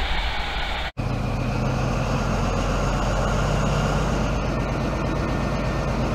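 A diesel train engine idles with a low rumble.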